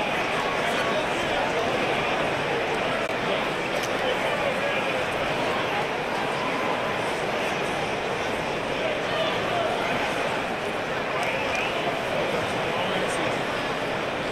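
Loud pop music plays through arena loudspeakers.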